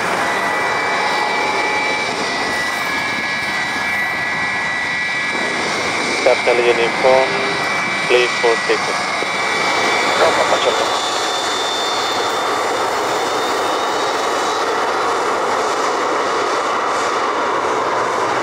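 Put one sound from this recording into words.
A jet airliner's engines whine steadily as the plane taxis close by.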